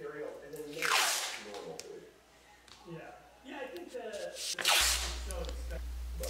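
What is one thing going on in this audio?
Masking tape is pulled off the roll with a tearing rasp.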